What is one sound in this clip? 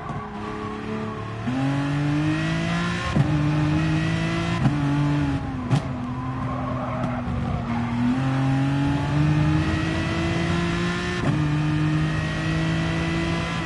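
A race car engine revs high, rising in pitch through each gear and dropping sharply at each gear change.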